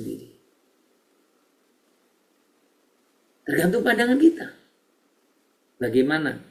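A middle-aged man speaks calmly through an online call, in short bursts with pauses.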